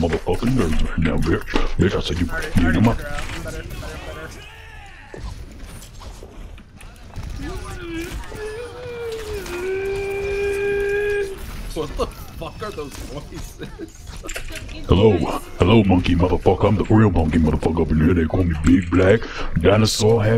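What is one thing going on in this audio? Rapid gunfire crackles from a game.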